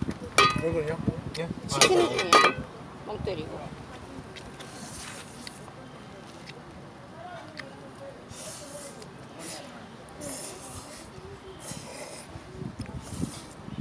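A boy slurps noodles.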